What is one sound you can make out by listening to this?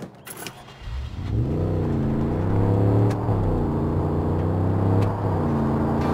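A car engine roars and hums steadily as the car drives.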